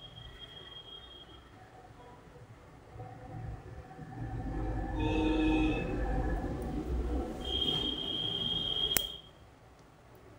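Knitting needles click and scrape softly against each other.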